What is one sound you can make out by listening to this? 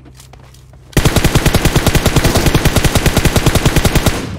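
An automatic rifle fires in a rapid, unbroken stream of shots.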